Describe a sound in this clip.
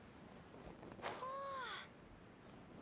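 Wind rushes briefly as a game character glides through the air.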